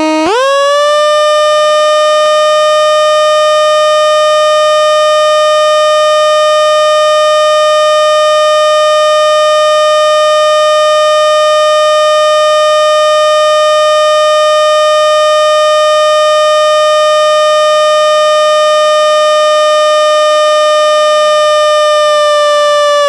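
A lower electronic tone slowly glides down, holds, then rises again.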